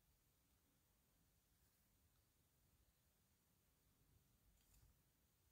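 A plastic model part clicks softly as it is handled.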